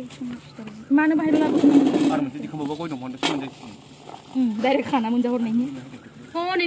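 Snacks rustle in a plastic bag as they are poured into a metal bowl.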